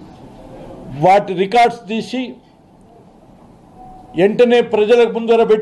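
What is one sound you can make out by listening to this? An elderly man speaks firmly and with emphasis, close to a microphone.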